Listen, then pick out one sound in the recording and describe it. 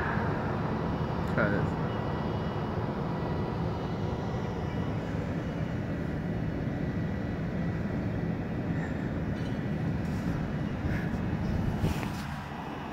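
A boat engine rumbles low and steadily close by.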